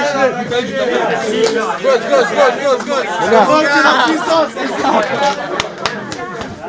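Several men talk and laugh cheerfully close by.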